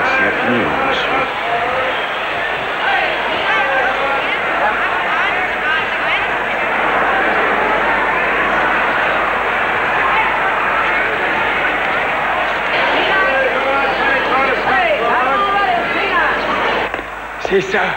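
A large crowd murmurs and chatters.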